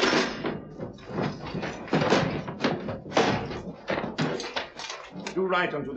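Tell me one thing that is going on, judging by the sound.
A man speaks loudly.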